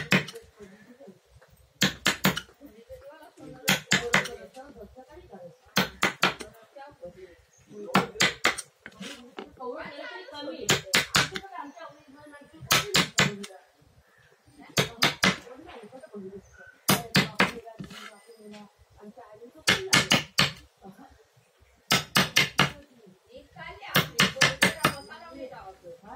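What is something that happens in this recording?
A wooden mallet taps a chisel in quick bursts of sharp knocks.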